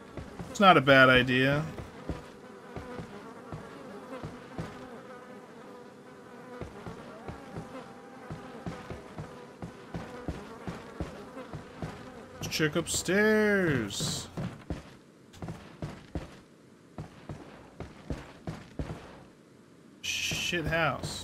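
A young man speaks into a microphone with animation.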